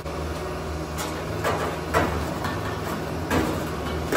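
A hammer taps on sheet metal.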